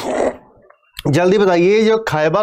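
A young man speaks loudly and with animation close by.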